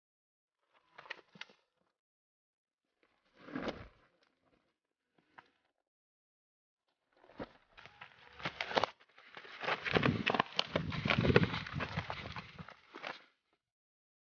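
Footsteps run through dry leaves and undergrowth.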